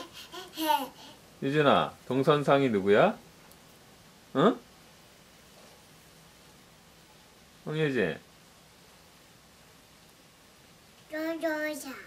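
A toddler babbles and squeals nearby in high-pitched bursts.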